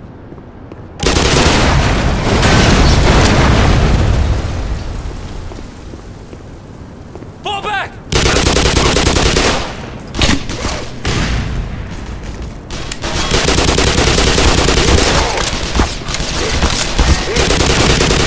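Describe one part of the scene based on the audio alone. Rapid bursts of machine gun fire ring out close by.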